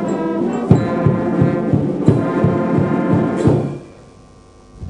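A brass band plays a lively march with drums beating.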